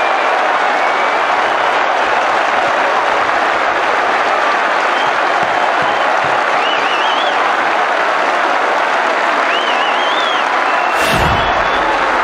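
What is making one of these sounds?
A large stadium crowd cheers and roars loudly outdoors.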